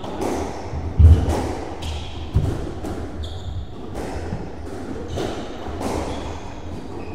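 A squash ball smacks hard against the walls, echoing in an enclosed court.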